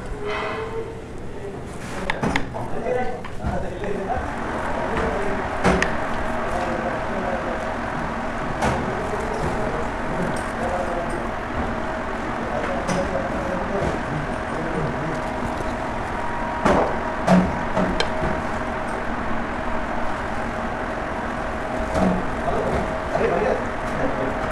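A metal spoon clinks and scrapes against a plate.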